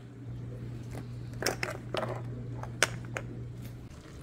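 Glass jars clink together.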